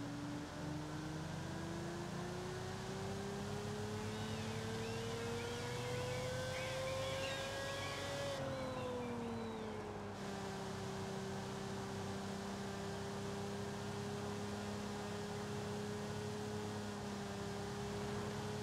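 A sports car engine hums and climbs steadily in pitch, then drops back and holds a steady drone.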